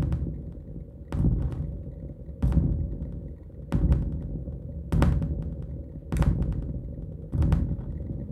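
A low electronic drone hums underneath.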